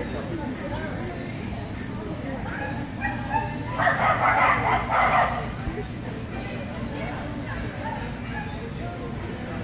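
A young woman calls out commands to a dog in a large echoing hall.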